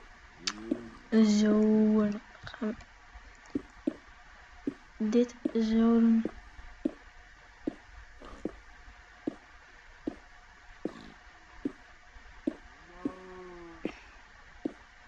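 A teenage boy speaks briefly and casually close to a microphone.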